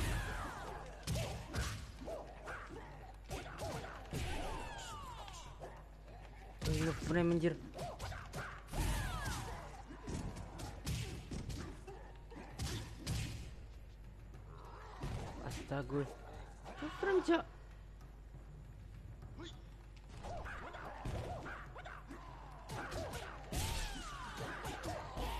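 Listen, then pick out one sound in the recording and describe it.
Fighters grunt and yell.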